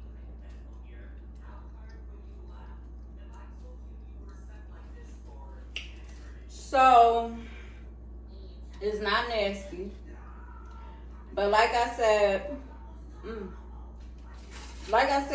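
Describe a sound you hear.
A fork clinks on a plate.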